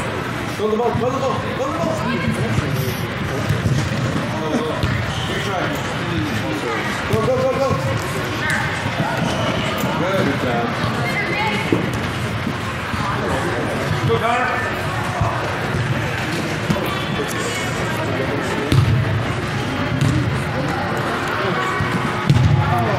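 Voices of young players and onlookers shout and call out in a large echoing hall.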